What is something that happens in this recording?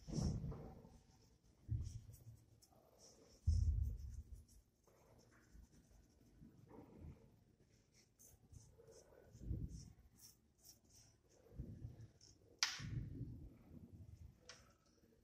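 Hands softly brush and swish sand across glass.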